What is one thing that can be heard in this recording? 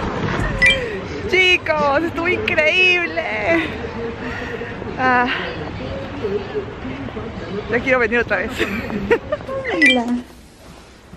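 A young woman talks and laughs close by with animation.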